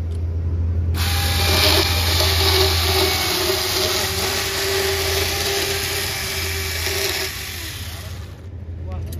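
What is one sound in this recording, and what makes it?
A chainsaw cuts through a log, growing louder.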